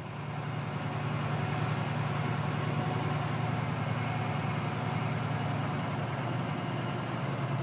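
A vehicle engine hums steadily from inside the cab.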